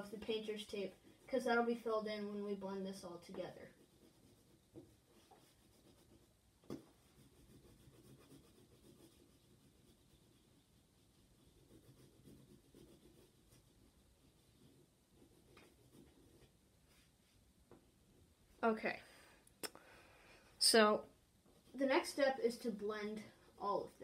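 A crayon scratches back and forth on paper.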